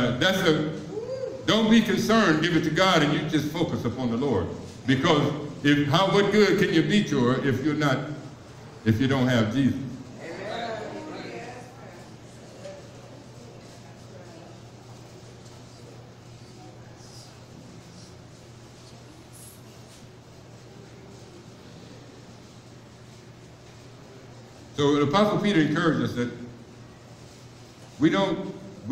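A man speaks with animation into a microphone, heard through loudspeakers in a large room.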